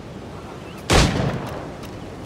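A gunshot fires with a loud crack.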